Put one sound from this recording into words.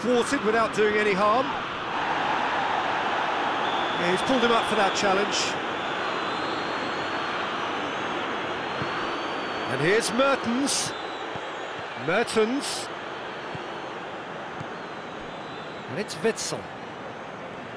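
A large stadium crowd roars steadily throughout.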